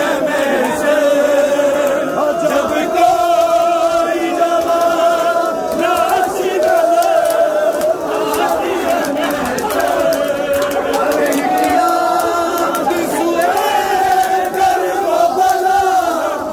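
Men rhythmically beat their chests with their hands.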